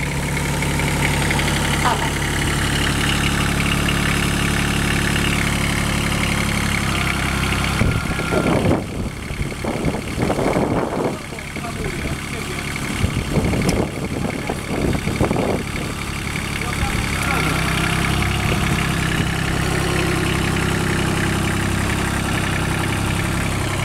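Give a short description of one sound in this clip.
A small tractor engine runs with a steady, low rumble.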